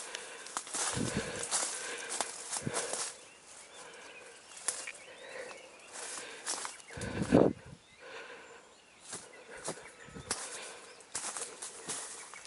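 Footsteps crunch on a leaf-strewn forest path.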